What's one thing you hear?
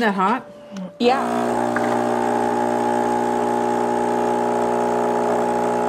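A coffee machine hums steadily.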